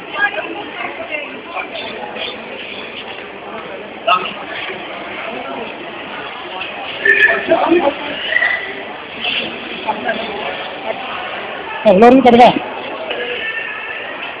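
Men and women chatter nearby in an echoing hall.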